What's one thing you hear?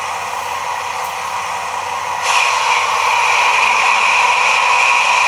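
A model diesel locomotive's engine sound hums steadily from a tiny loudspeaker and grows louder partway through.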